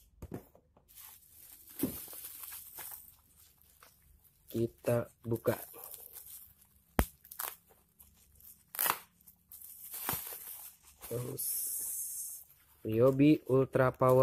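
Bubble wrap crinkles and rustles.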